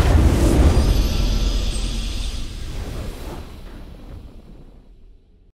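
A triumphant game fanfare plays and slowly fades.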